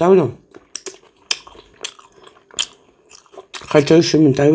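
A middle-aged woman chews food close to the microphone.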